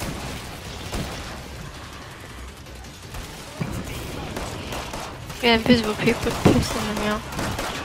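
Guns fire in sharp, repeated shots.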